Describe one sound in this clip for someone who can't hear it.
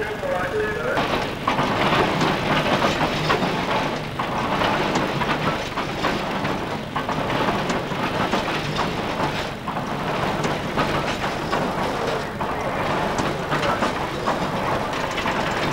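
A steam engine chuffs steadily.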